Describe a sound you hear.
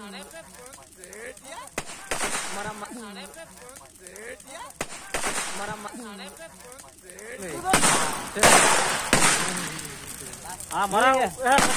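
Burning wood crackles and pops.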